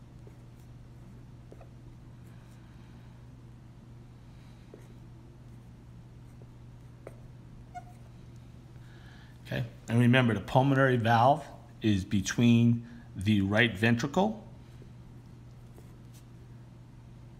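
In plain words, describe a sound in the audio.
A felt marker squeaks softly as it writes on a board.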